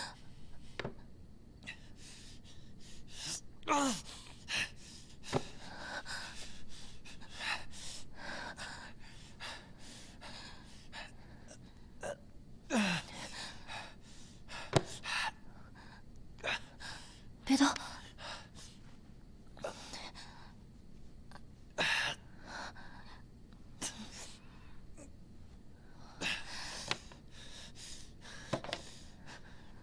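A young man groans and cries out in pain, close by.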